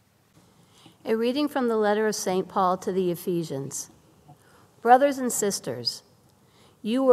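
A middle-aged woman reads aloud calmly into a microphone.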